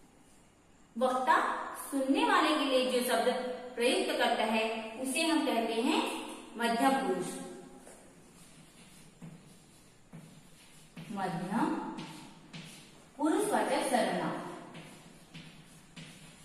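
A woman speaks clearly and calmly, as if teaching, close by.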